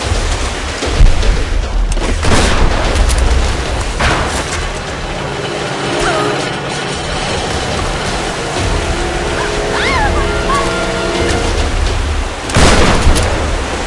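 Water splashes loudly as something plunges in.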